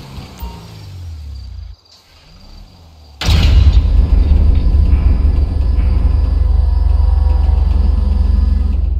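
A truck engine rumbles low and steadily.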